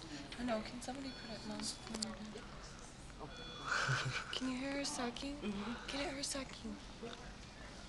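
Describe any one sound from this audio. A young woman speaks softly close by.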